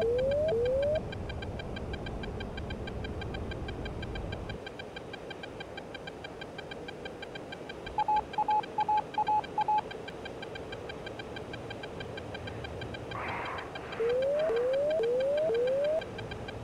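The twin jet engines of a fighter jet roar steadily, heard from the cockpit.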